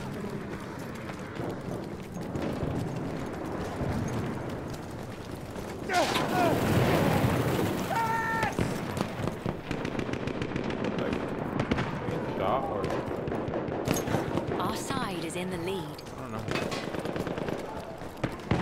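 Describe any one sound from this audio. Distant gunfire and explosions rumble steadily.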